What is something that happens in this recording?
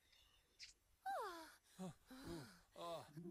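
A woman moans loudly.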